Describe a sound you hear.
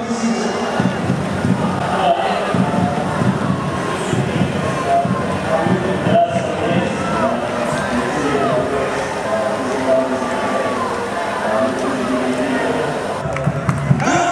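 A crowd of children and adults cheers and chatters excitedly close by.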